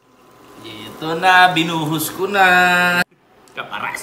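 Water pours from a kettle into a pot.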